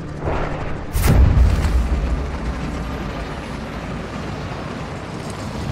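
Wind rushes past during a free fall.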